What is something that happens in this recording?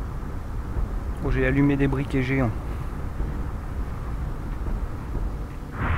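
Torch flames crackle and flutter steadily.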